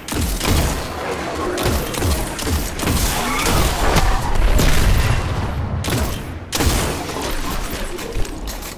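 Guns fire in rapid bursts with loud blasts and impacts.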